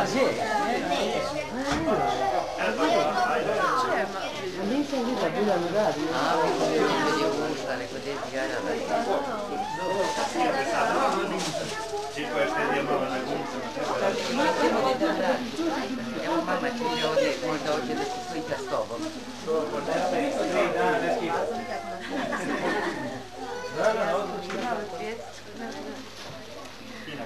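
A man in a deep voice speaks warmly to the children.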